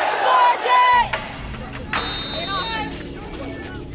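Young women shout loudly together outdoors.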